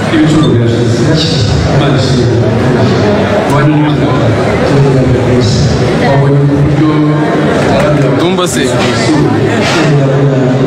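A young man talks calmly and close to a microphone.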